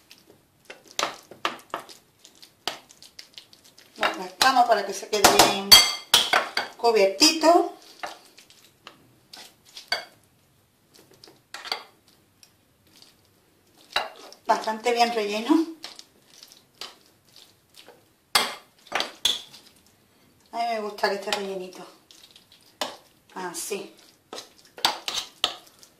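Soft food is pressed and patted into a dish.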